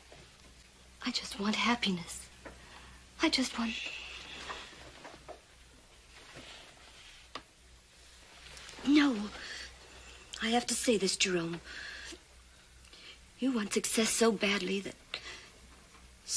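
A woman speaks in a tense, hushed voice close by.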